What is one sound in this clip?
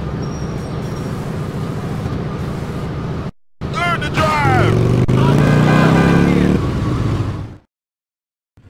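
A motorcycle engine hums steadily as it rides along.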